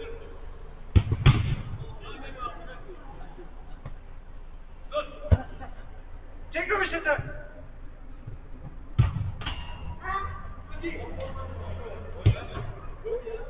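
A football thumps as it is kicked.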